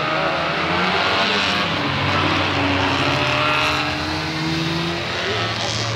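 A vintage car passes close by at speed.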